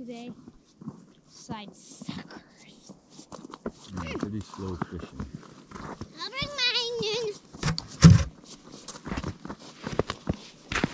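Footsteps crunch on snow and ice.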